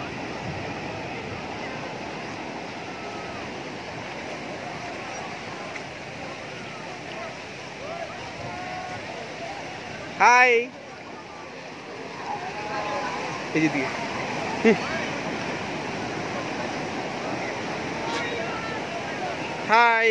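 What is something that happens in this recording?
Gentle waves wash over a flat shore.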